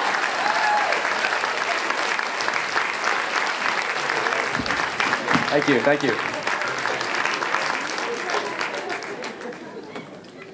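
Young men sing together through microphones in a large hall.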